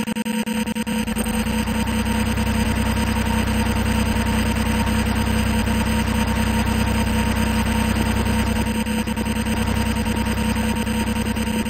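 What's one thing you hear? A heavy vehicle's engine rumbles low and steady.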